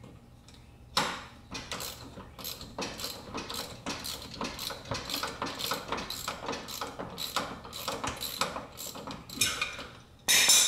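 A ratchet wrench clicks rapidly as a bolt is loosened under a car.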